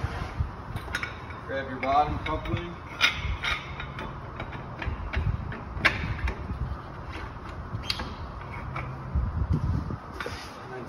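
Metal hose couplings clank and click together.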